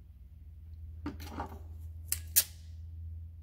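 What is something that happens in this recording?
A small metal part clicks and rustles between fingers.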